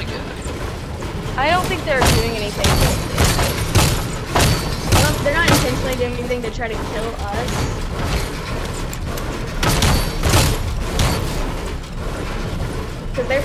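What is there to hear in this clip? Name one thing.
A video game pickaxe strikes a wall with sharp knocks.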